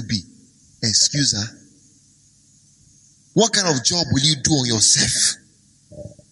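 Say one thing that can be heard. A man speaks forcefully into a microphone, in short bursts with pauses.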